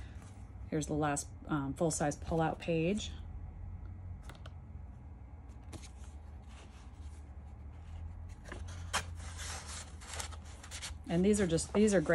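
Stiff paper pages rustle and flap as they are turned.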